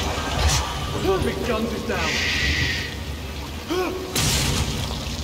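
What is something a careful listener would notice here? A creature shrieks.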